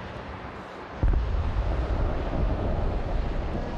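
A loud explosion booms out nearby and rumbles as it echoes off buildings.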